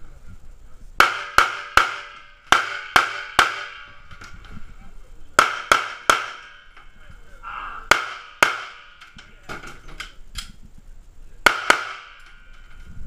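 Pistol shots crack in quick bursts, ringing sharply inside a hollow metal space.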